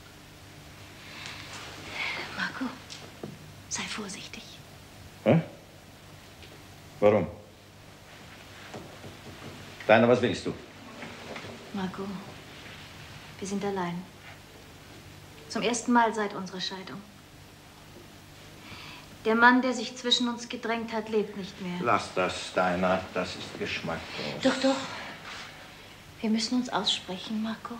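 A woman speaks tensely, close by.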